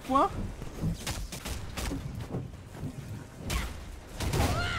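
Blows and impacts thud and crash.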